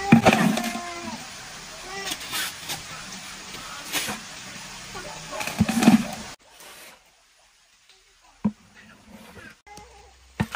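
A shovel scrapes and thuds into dry soil.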